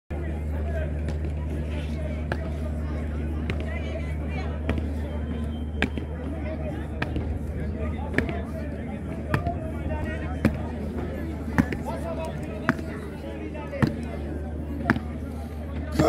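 Boots strike stone in a slow, steady marching rhythm outdoors.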